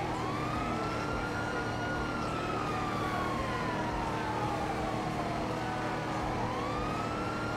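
A car engine hums steadily, its pitch slowly rising and falling and then rising again as the gear changes.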